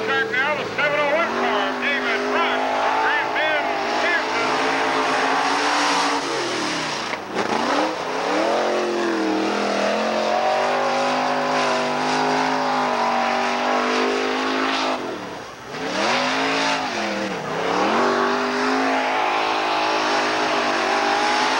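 A race car engine roars loudly, rising and falling as it passes.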